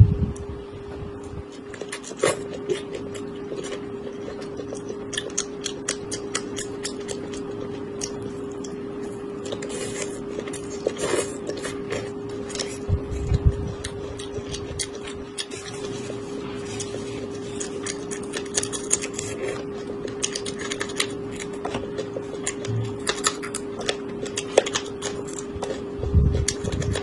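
A woman chews crunchy food noisily, close to a microphone.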